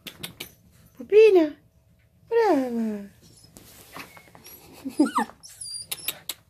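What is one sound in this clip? A puppy whines and yelps in high, falling cries.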